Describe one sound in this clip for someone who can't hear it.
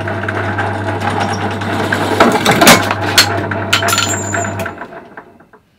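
A drill press whirs as it drills.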